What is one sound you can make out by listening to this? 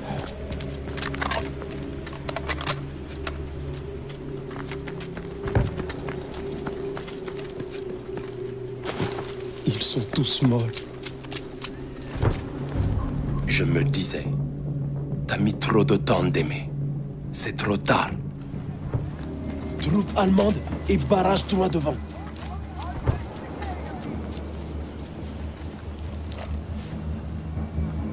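Footsteps crunch over dry leaves and soft ground.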